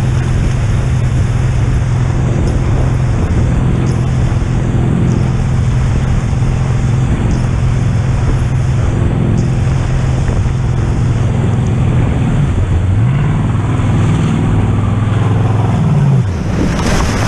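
A motorboat engine drones steadily, then revs up and down.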